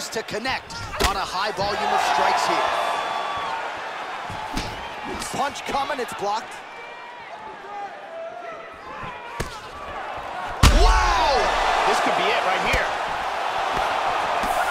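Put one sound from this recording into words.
Kicks and punches land with heavy thuds.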